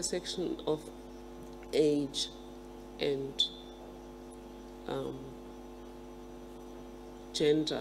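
A middle-aged woman speaks calmly and slowly into a microphone, with pauses.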